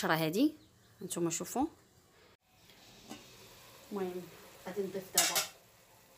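A metal lid clanks as it lifts off a cooking pot.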